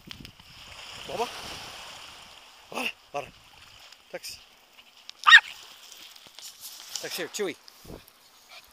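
A small dog yelps and whines excitedly close by.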